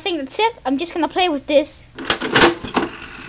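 A slot machine lever clunks as it is pulled.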